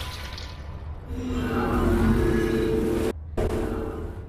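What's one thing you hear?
A swirling magical rush rises and swells, then cuts off.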